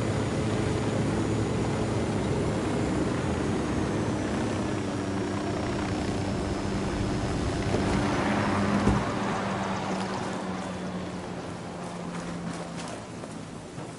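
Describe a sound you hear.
A helicopter's rotor and engine roar steadily, then wind down.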